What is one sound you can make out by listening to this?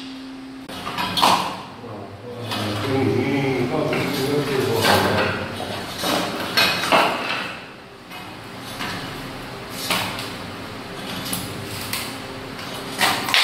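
Loose wooden tiles clatter against each other.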